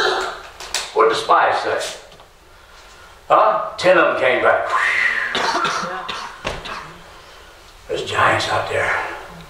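A middle-aged man speaks with animation into a microphone in a reverberant hall.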